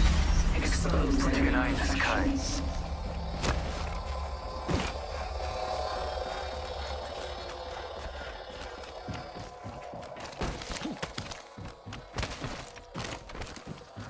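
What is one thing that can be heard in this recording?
Footsteps thud quickly across hard ground.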